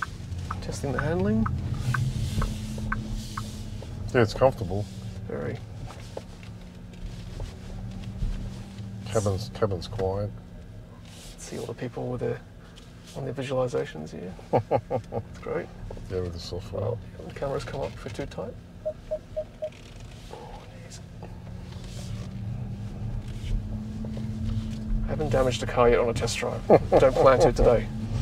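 A car's motor hums steadily and quietly as it drives.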